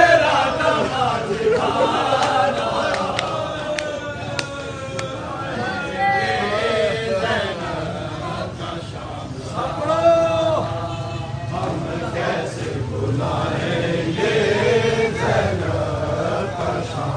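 A crowd of men chants together loudly outdoors.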